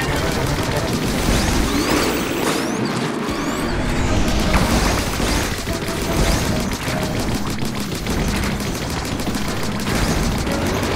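Game music plays loudly with a pounding beat.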